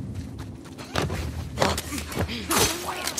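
A man grunts close by.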